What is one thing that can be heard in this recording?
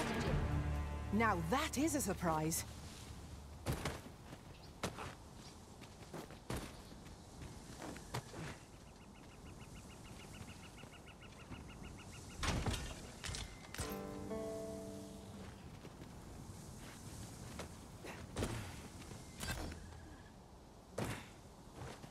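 Armoured footsteps crunch over rock and dirt.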